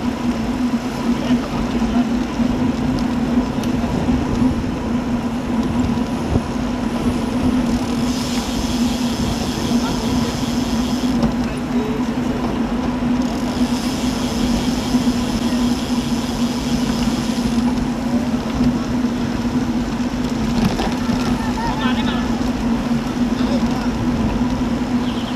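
Wind rumbles steadily against a microphone while cycling outdoors.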